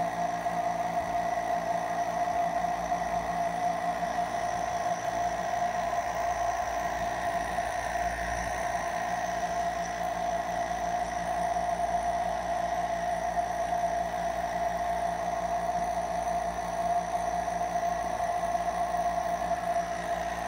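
A nebulizer compressor hums and hisses steadily.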